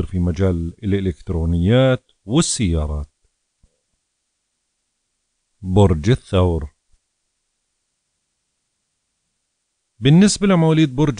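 A middle-aged man speaks clearly and calmly into a close microphone, in short phrases with pauses.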